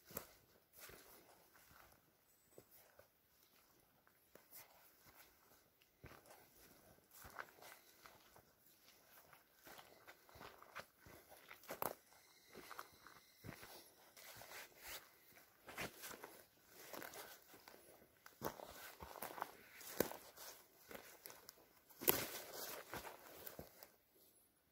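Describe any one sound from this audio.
Footsteps crunch on dry leaves and twigs.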